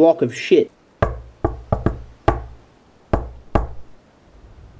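A fist knocks on a door several times.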